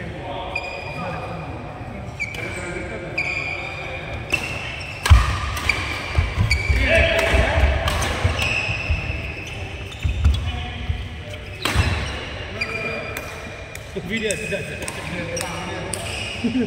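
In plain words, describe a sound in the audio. Sports shoes squeak sharply on the court floor.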